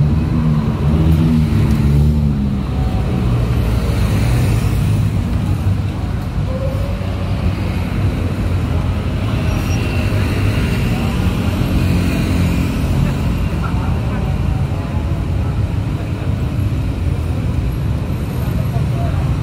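A busy city street hums with the distant traffic of passing cars and motorbikes.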